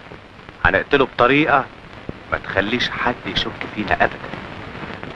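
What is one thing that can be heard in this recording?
A man speaks intensely, close by.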